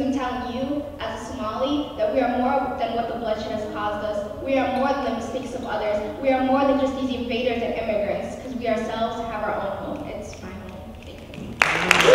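A young woman reads out through a microphone.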